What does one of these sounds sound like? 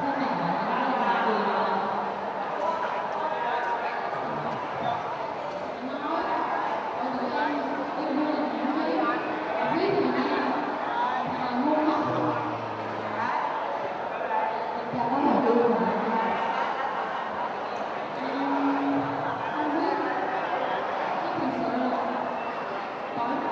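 A boy speaks into a microphone over loudspeakers.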